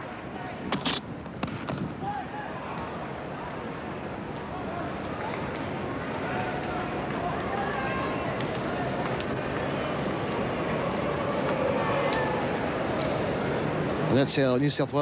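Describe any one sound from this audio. A large crowd cheers and applauds in the distance.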